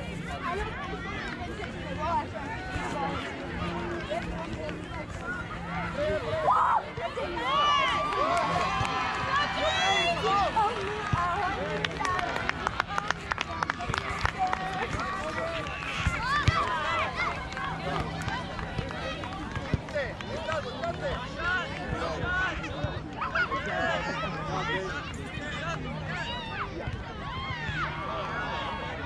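A crowd of children and adults shout and chatter across an open field outdoors.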